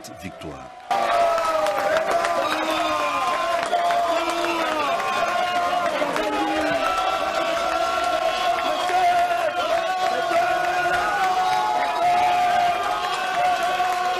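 A group of men sing and chant loudly in celebration.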